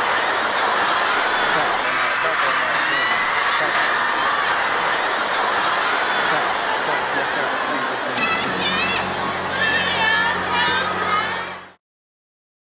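A large crowd screams and cheers loudly at a concert.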